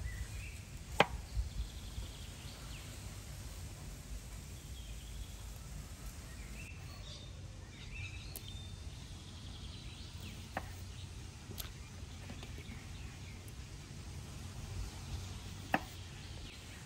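A knife taps sharply on a wooden cutting board.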